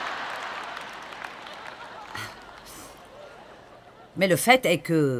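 An audience applauds in a large hall, fading away.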